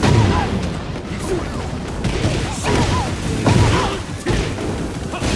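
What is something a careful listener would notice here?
A fighter grunts and shouts with each strike.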